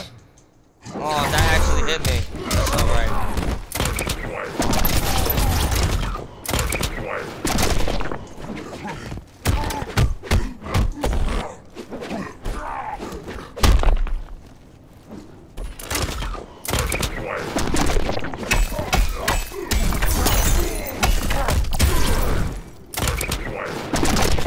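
Punches and kicks land with heavy thuds in a video game fight.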